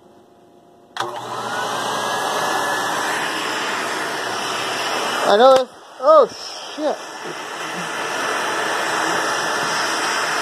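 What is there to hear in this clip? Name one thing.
A vacuum cleaner starts up and runs with a loud, steady whoosh.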